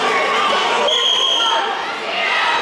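A referee blows a short, shrill whistle.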